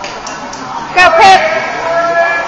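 Young girls cheer with loud shouts.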